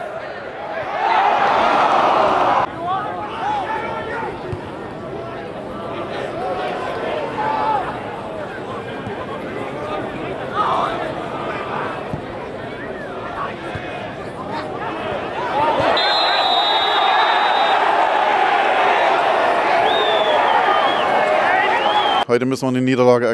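A crowd cheers and chatters loudly outdoors.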